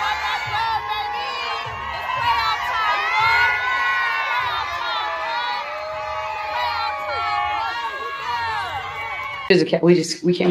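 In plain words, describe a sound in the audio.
A young woman shouts excitedly up close.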